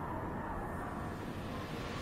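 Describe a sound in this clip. Water murmurs and rushes underwater.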